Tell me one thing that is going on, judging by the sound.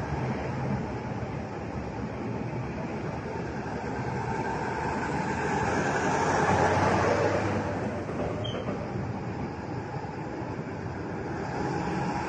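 Heavy trucks rumble past close by, one after another.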